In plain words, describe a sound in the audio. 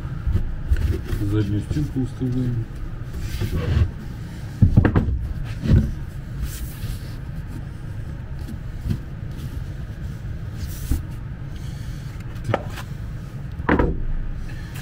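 Wooden panels knock together as a box is put together.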